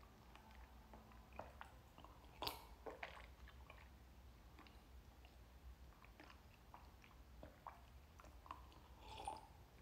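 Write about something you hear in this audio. A young man sips from a cup.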